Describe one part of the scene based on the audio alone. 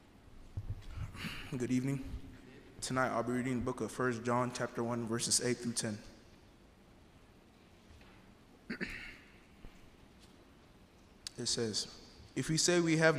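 A young man speaks into a microphone, heard through loudspeakers in an echoing hall.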